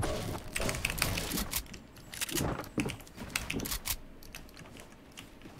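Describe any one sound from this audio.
Keys clatter on a computer keyboard.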